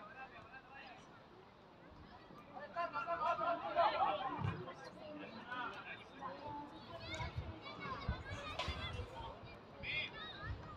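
Players shout and call to each other across an open outdoor pitch.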